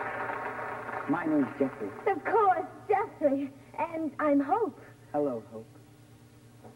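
A young woman speaks softly and laughs.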